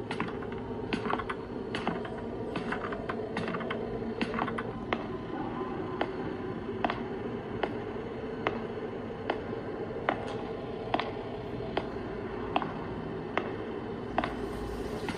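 Footsteps thud at an even, steady pace on a hard floor.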